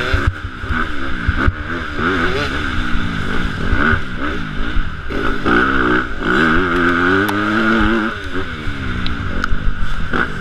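A dirt bike engine revs and roars up close, rising and falling.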